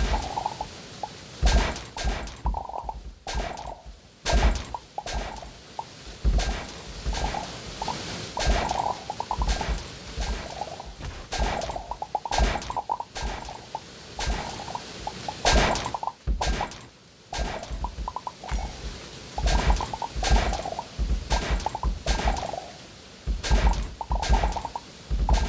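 Game coins chime in quick bursts as they are collected.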